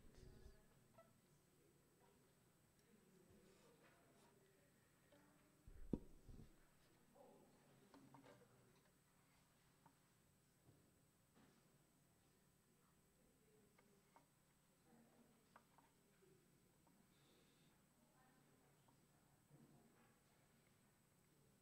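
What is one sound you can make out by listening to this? Voices of a congregation murmur softly in a large hall.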